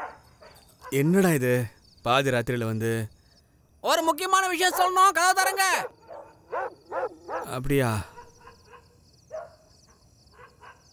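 A middle-aged man speaks tensely and close by.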